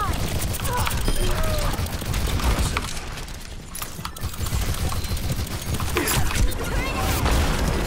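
Heavy thumping blasts boom nearby.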